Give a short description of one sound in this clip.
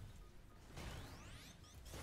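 An electric shield crackles and hums.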